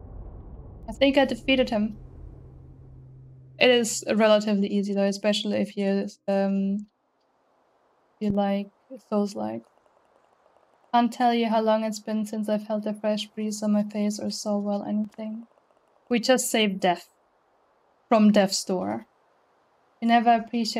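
A young woman talks animatedly into a close microphone.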